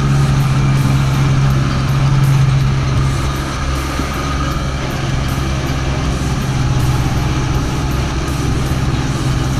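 Water sprays and rushes behind a jet ski.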